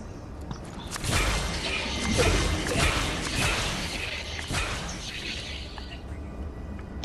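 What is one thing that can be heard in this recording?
An icy blast bursts and hisses loudly.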